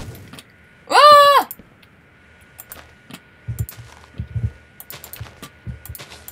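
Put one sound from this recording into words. Blocks are placed with soft, short thuds.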